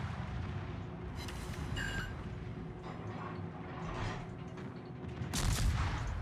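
Shells explode with dull rumbling booms.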